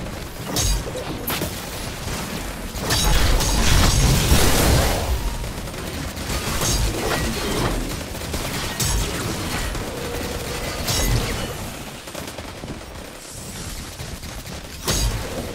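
A sword swishes and clangs in a game fight.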